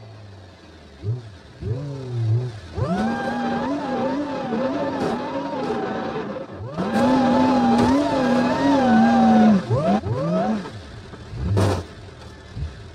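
A car engine revs and strains, rising and falling in pitch.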